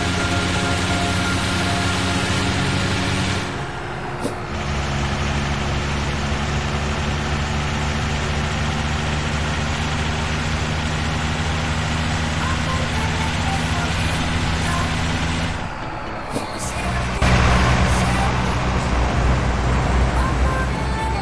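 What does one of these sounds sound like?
Tyres roll with a steady hiss on a paved road.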